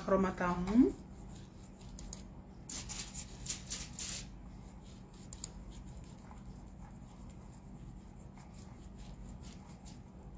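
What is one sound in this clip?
A paintbrush scratches and dabs softly on a canvas.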